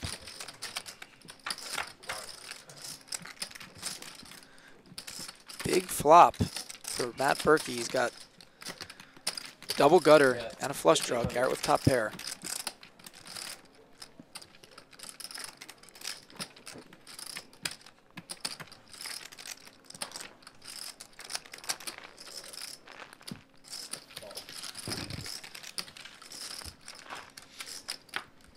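Poker chips click and clatter together.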